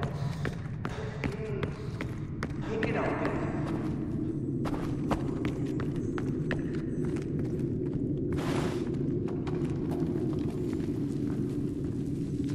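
Footsteps tread on stone floors.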